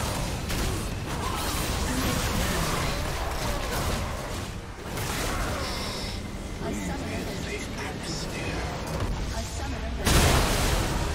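Magic blasts and clashing weapons crackle in a chaotic fight.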